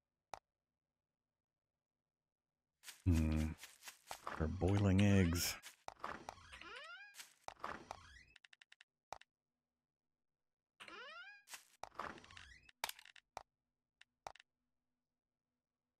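Short menu clicks sound in quick succession.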